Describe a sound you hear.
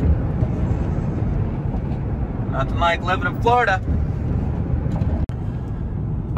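Tyres rumble steadily on the road as a vehicle drives along.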